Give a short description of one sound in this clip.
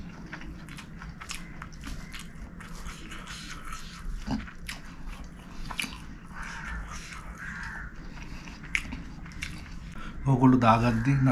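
A man chews food with wet, smacking sounds close to a microphone.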